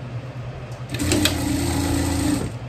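A sewing machine runs with a steady hum.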